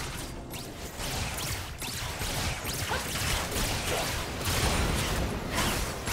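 Magic spells whoosh and crackle in a fast battle.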